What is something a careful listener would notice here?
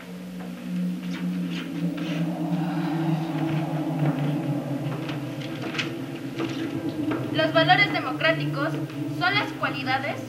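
High heels click on a wooden stage floor.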